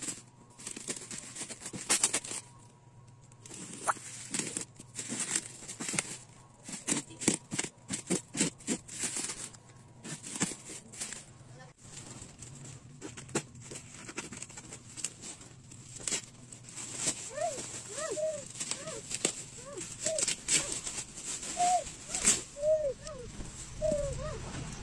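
A hand rustles and crinkles a plastic mailer bag.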